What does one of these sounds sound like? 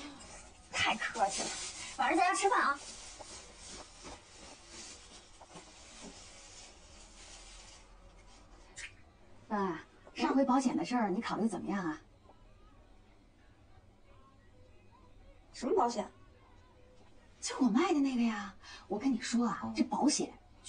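A young woman speaks warmly and politely.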